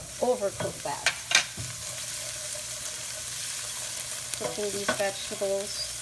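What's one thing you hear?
A wooden spoon scrapes and knocks against a metal pan.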